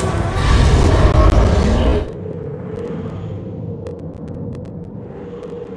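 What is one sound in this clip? A deep, rushing magical roar swells loudly, then drops suddenly to a low hum.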